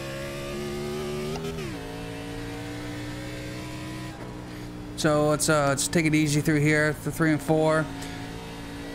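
A race car engine drones steadily, its pitch dropping briefly as the gear shifts.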